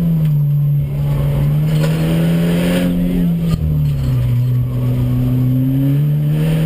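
A car engine roars loudly from inside the cabin, its pitch rising and falling with gear changes.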